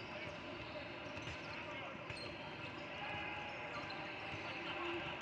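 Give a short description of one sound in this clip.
Basketballs bounce on a wooden floor.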